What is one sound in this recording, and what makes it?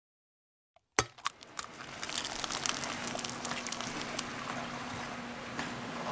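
An egg sizzles and crackles in a hot frying pan.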